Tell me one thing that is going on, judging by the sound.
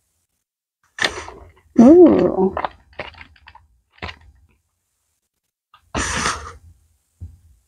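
A young woman sniffs deeply.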